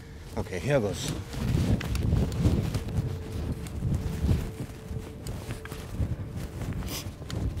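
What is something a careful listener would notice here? A shovel scrapes and digs into loose sand.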